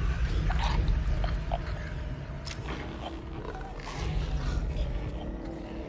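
Footsteps scuff slowly over a gritty floor.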